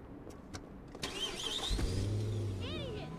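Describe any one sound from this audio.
A car engine starts and revs as the car drives off.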